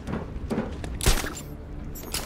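A grappling gun fires with a sharp crack.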